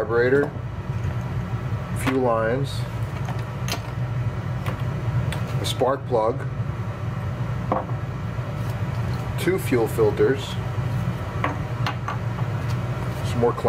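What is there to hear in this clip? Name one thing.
Small metal and plastic parts clack down onto a wooden bench.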